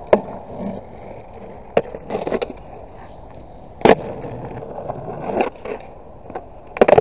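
A skateboard deck clacks sharply against the ground.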